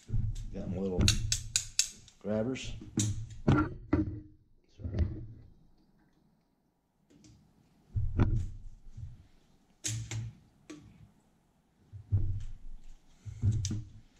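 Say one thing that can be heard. Metal tongs click and clack.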